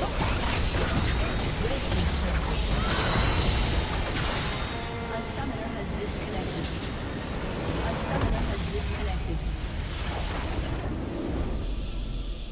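Spell blasts and weapon hits crash and clash in a fast game battle.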